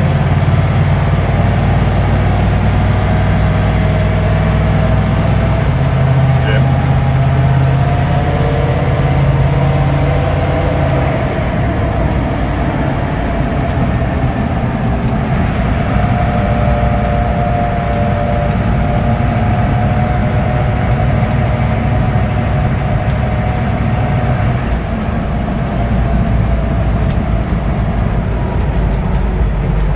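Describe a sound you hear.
A heavy vehicle's engine rumbles steadily while driving.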